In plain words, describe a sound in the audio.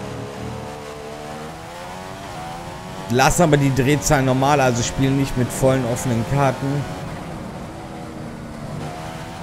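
A racing car engine roars and rises in pitch as the car speeds up, shifting through gears.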